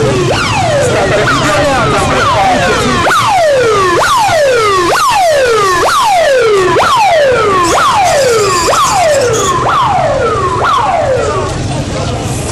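A siren wails in rapid repeated sweeps close by.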